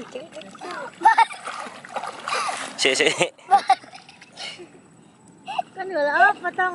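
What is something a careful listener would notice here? A young girl laughs and shouts with delight.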